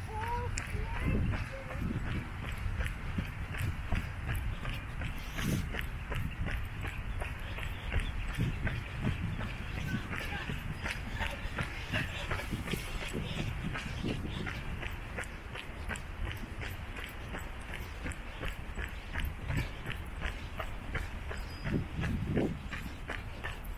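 Bicycle tyres roll steadily over a paved path.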